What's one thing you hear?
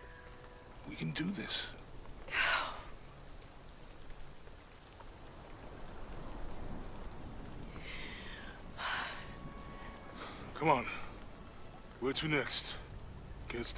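A man speaks gently and encouragingly.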